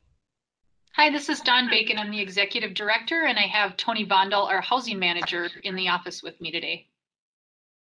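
A woman speaks steadily over an online call.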